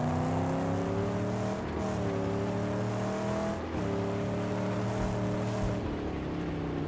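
Tyres crunch over sand and gravel.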